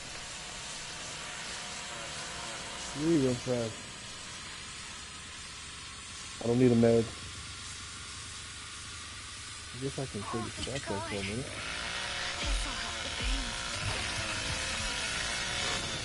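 Steam hisses steadily from a pipe.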